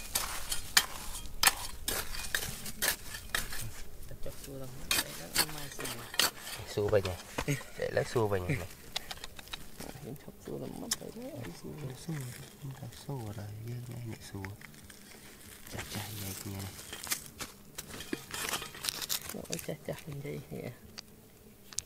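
Stones and gravel clatter and scrape as they are dug at.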